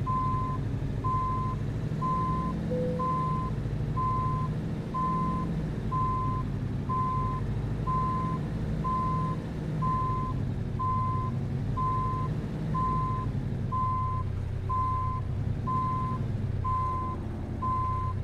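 A reversing alarm beeps at a steady, even pace.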